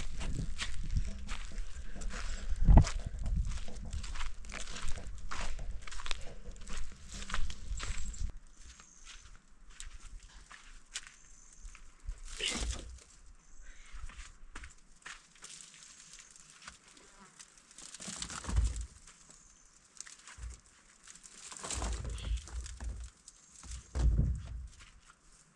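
A wicker basket creaks and rustles close by.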